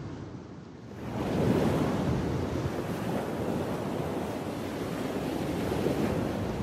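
Gentle waves lap and wash over a pebbly shore close by.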